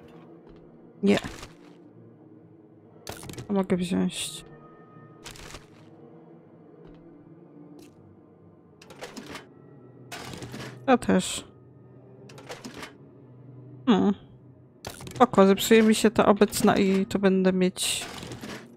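A young woman talks with animation into a microphone, in short bursts.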